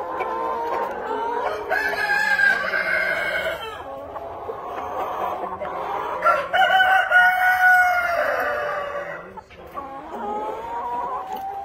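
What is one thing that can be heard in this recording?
Hens cluck and murmur throughout.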